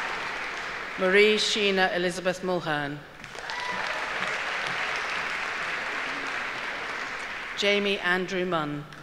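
A middle-aged woman reads out names through a microphone in a large hall.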